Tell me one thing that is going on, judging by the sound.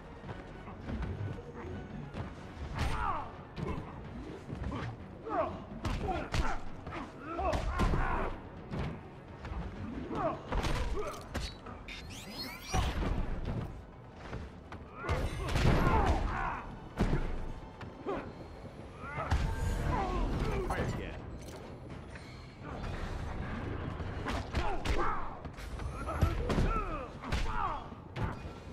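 Heavy punches and kicks thud and smack again and again.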